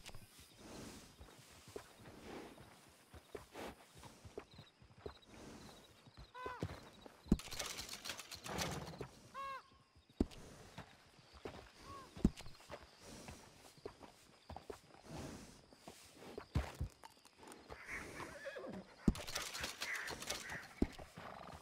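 A horse shifts its hooves with soft thuds on a straw-covered floor.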